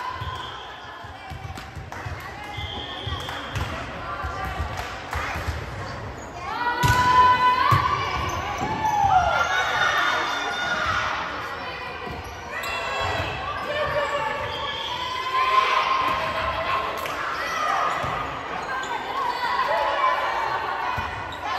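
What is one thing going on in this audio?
A crowd of spectators chatters and cheers in an echoing hall.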